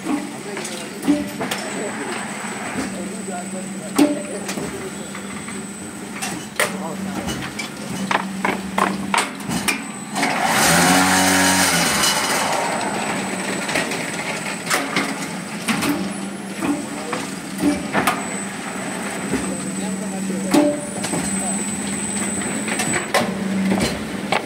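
A block-making machine hums steadily.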